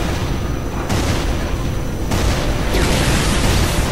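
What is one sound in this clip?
Explosions burst with a loud crackle.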